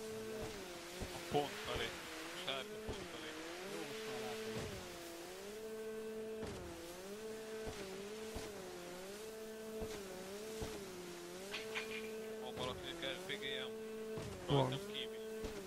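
A jet ski engine whines, its pitch rising and falling over and over.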